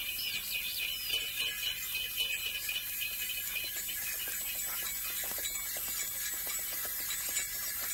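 Horse hooves clop on a dirt track.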